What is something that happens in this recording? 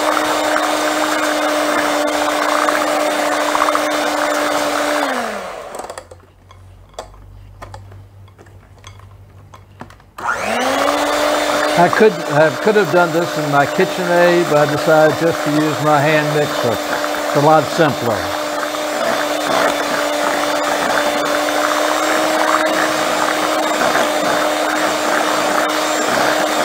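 An electric hand mixer whirs steadily, stops briefly, then starts again.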